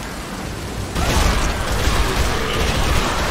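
Gunshots ring out rapidly.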